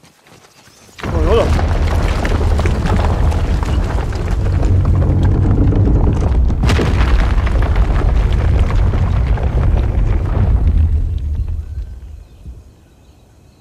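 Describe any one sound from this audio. A deep roaring rumble starts suddenly, holds, and slowly fades.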